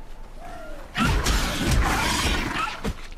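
Magic blasts crackle and burst during a fight.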